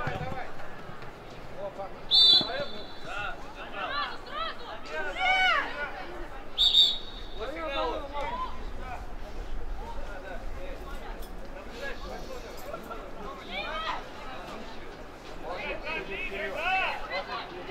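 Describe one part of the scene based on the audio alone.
Young players shout to each other outdoors.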